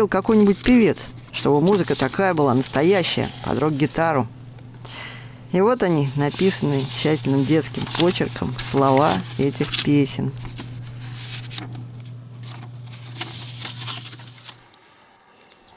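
Paper pages rustle and flutter as they are flipped.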